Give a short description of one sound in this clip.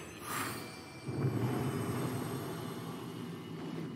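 A victory chime rings out.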